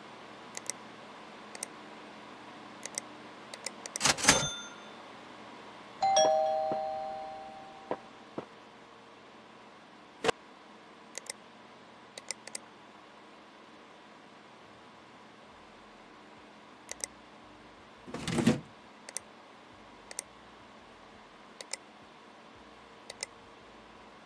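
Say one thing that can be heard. Short, soft interface clicks sound now and then.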